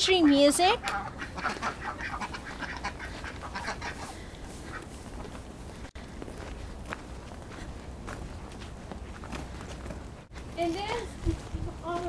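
A young woman laughs and talks close by, outdoors.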